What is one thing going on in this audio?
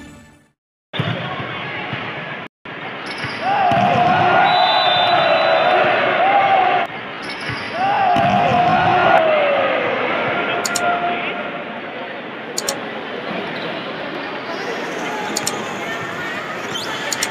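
A volleyball is struck sharply in a large echoing hall.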